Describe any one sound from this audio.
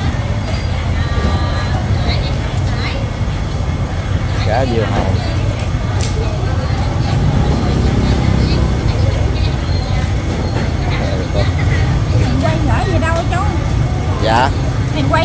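A busy outdoor market hums with many people chattering in the background.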